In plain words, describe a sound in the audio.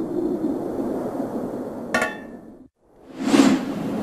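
A metal box lid clicks open.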